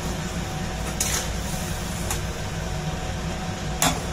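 A metal spatula scrapes and stirs in a pan.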